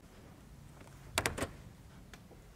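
A hand knocks on a door.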